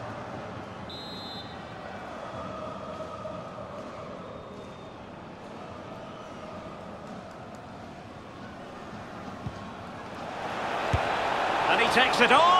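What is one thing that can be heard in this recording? A stadium crowd murmurs steadily and swells into a loud roar.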